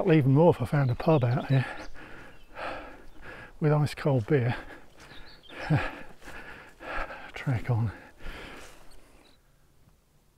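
An elderly man talks calmly and closely into a microphone outdoors.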